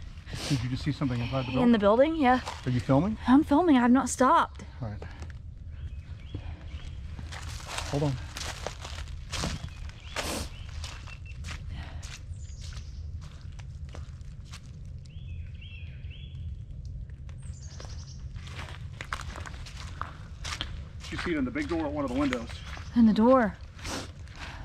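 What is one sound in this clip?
A young woman talks casually close by.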